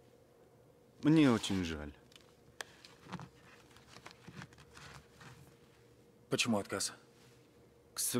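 A second middle-aged man speaks calmly in reply.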